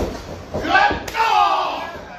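A sharp slap of a hand on bare skin rings out.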